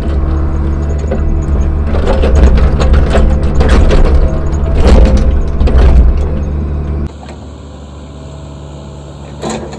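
An excavator engine rumbles steadily up close.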